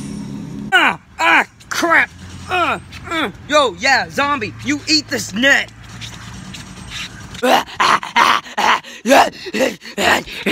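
A teenage boy talks animatedly close by.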